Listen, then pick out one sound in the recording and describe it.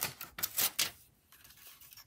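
A plastic bag crinkles as it is pulled away.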